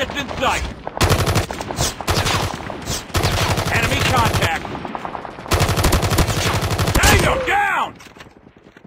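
Rapid gunfire rattles in loud, quick bursts.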